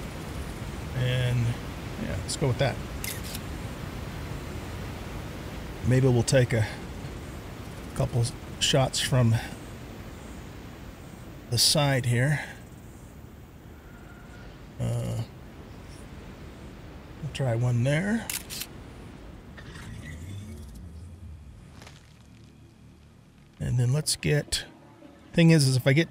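A man talks calmly into a close microphone, in short bursts.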